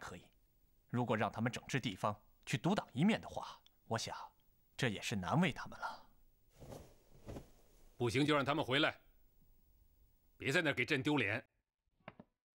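A man speaks sternly and angrily, close by.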